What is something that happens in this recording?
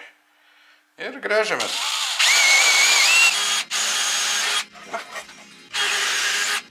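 A cordless drill whirs as it bores into wood.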